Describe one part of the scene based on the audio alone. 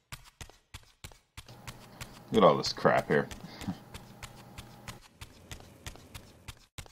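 Footsteps run quickly across a stone floor, echoing in a large hall.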